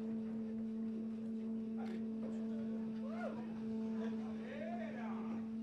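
A synthesizer drones on a low, steady tone.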